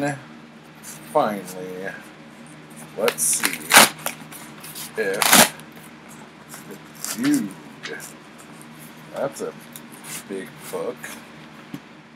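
A paper envelope crinkles and rustles as it is opened.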